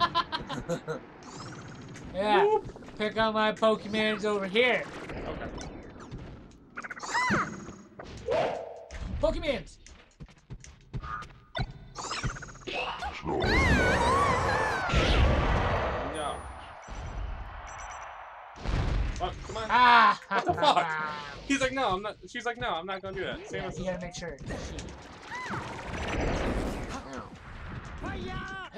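Fighting video game hit sounds crack and thump.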